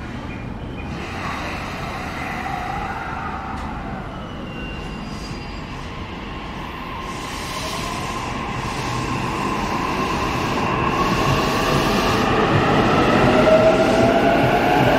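An electric train pulls away with a whine that rises in pitch.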